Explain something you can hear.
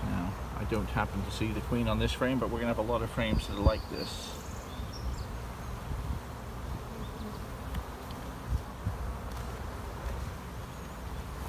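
Honeybees buzz steadily around a hive.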